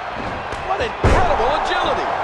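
A heavy thud sounds as a body slams onto a wrestling mat.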